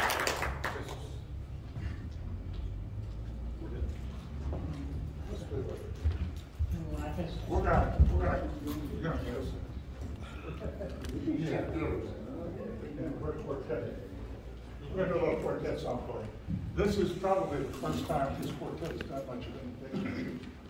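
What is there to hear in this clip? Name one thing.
Elderly men talk and chatter nearby in a room.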